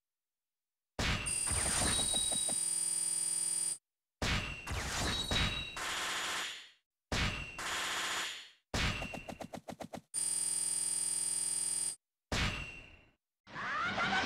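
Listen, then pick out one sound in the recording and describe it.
Electronic menu chimes and whooshes sound in short bursts as scores tally up.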